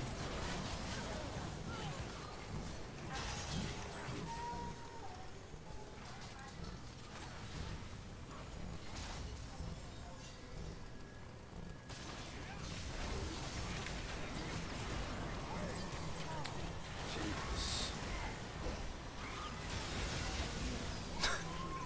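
Game sound effects of spells and hits burst and clash.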